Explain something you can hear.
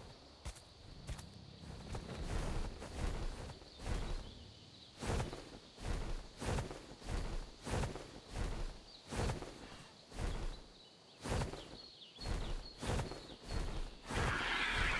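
Large wings flap in slow, regular beats.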